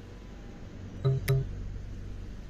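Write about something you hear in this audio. A button clicks twice.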